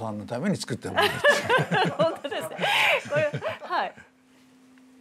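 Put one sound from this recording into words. A middle-aged woman speaks cheerfully and laughs.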